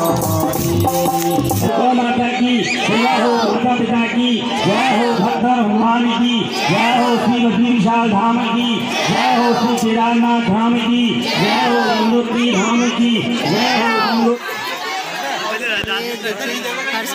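A crowd of men, women and children sings a chant loudly together nearby.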